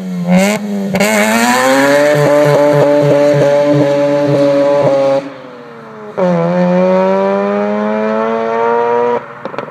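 A car accelerates away hard, its engine screaming.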